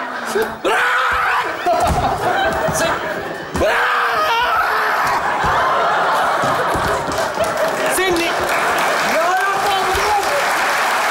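An audience laughs loudly in a large hall.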